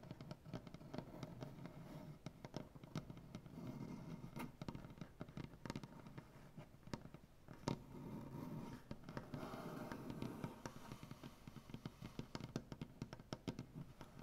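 Fingernails tap and scratch rapidly on a wooden surface, close up.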